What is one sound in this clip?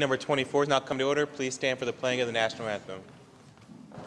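A man speaks calmly into a microphone in a large, echoing room.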